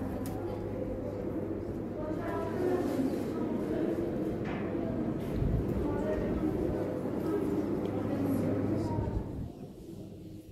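An air cooler hums steadily.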